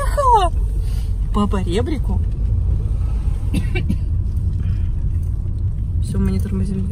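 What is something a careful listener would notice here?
A car engine hums low and steady inside the car.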